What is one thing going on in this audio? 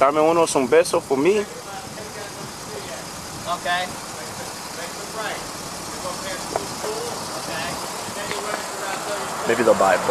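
A man talks loudly and excitedly close by.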